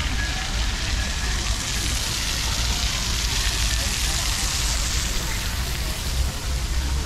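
Fountain jets splash steadily into water.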